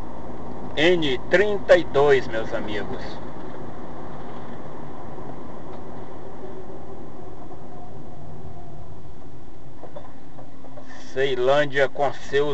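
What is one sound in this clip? Tyres roll on the road surface.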